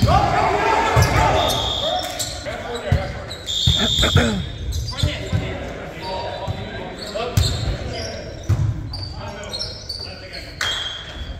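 A volleyball thuds as players hit it in a large echoing gym.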